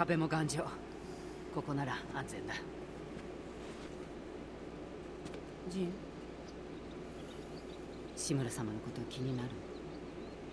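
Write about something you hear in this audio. A young woman speaks calmly and quietly.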